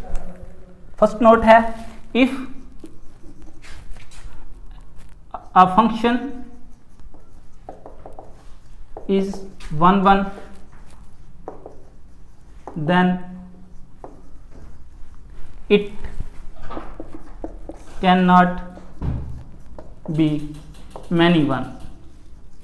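A young man speaks clearly and in a teaching manner, close to a microphone, with pauses between phrases.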